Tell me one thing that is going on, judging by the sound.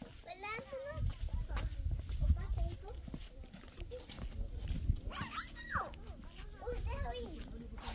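Footsteps scuff on hard ground.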